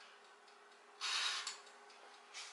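A knob clicks as it is turned.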